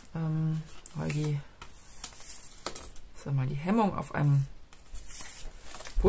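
Stiff paper pieces rustle as they are handled.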